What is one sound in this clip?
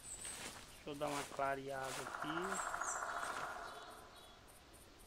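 Footsteps rustle through leafy undergrowth.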